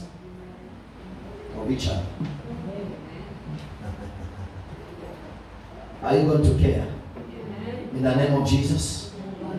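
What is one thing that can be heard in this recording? A young man speaks with animation through a microphone over loudspeakers.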